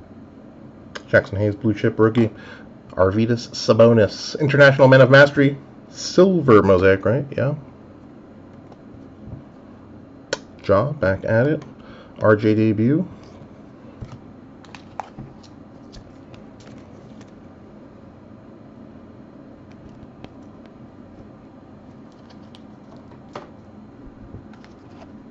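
Trading cards rustle and slide softly as they are handled.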